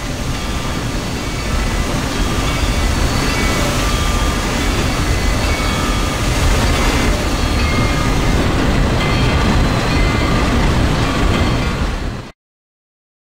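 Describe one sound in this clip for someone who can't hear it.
A freight train rumbles along steadily on its tracks.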